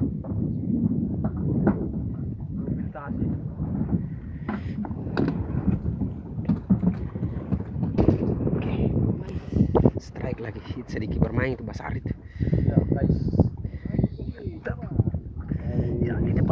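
Wind rumbles over the water.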